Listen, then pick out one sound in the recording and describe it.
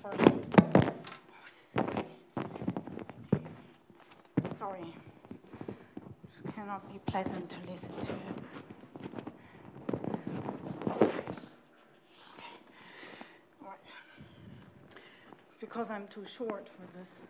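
A man lectures calmly in a room with a slight echo.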